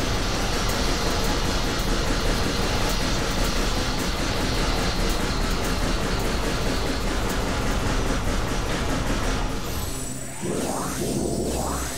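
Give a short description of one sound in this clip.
An arm cannon fires rapid energy blasts.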